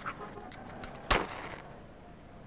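A match strikes and flares.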